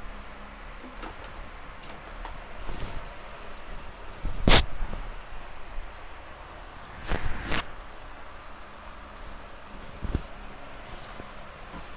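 Silk fabric rustles as it is unfolded and spread out.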